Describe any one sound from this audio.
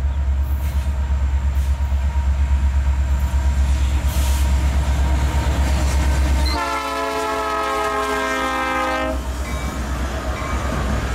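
A diesel locomotive rumbles loudly as it approaches.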